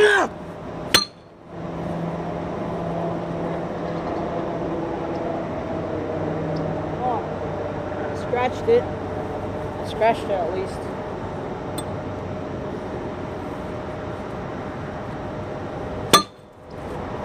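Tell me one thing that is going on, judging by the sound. A wooden stick strikes a glass bottle with a sharp crack.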